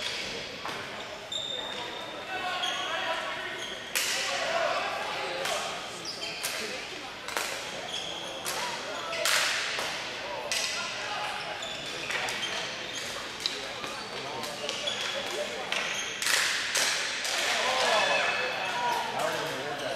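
Shoes squeak sharply on a hard floor.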